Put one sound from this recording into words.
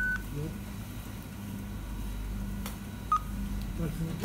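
A card terminal beeps.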